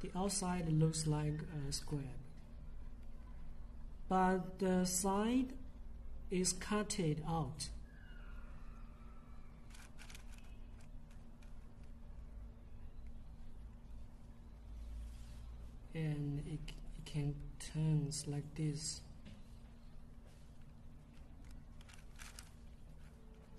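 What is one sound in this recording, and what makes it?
A plastic puzzle cube clicks and clacks as its layers are twisted by hand.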